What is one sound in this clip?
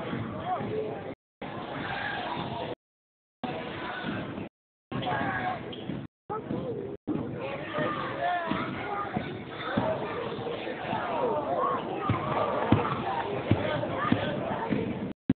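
Young girls shout and call out in a large echoing gym.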